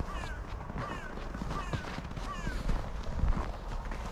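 Footsteps crunch on snow nearby.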